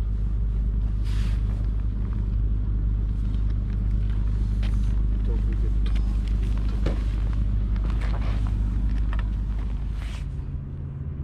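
A fishing reel and rod rattle and click as a catch is lifted in.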